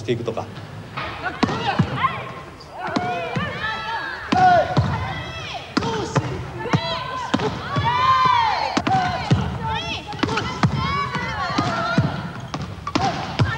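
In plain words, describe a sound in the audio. A volleyball smacks against hands and the floor again and again.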